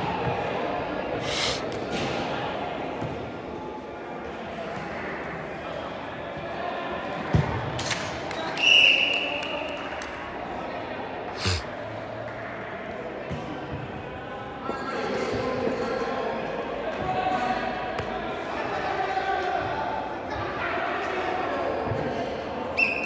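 Players' voices call out across a large echoing indoor hall.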